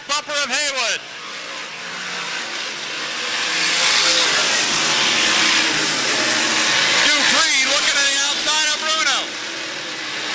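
A race car engine revs up and down as a single car drives around the track.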